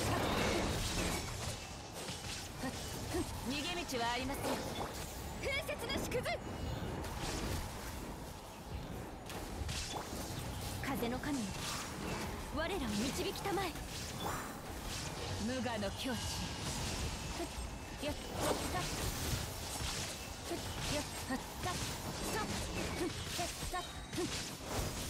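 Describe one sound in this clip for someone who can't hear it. Blades slash in quick, sharp bursts.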